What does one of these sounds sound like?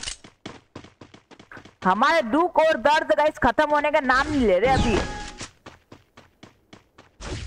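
Quick footsteps run over a hard floor.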